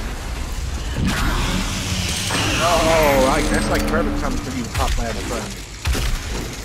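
A monster growls and roars up close.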